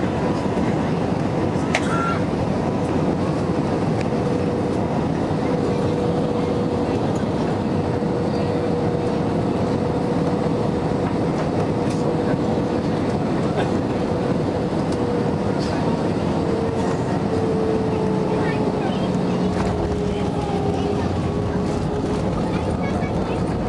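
Jet engines roar loudly and steadily close by, with a droning whine.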